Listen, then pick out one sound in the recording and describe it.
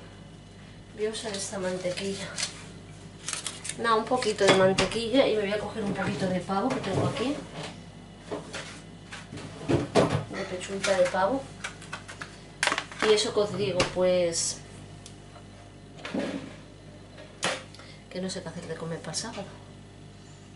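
A middle-aged woman talks close by, in a relaxed, chatty way.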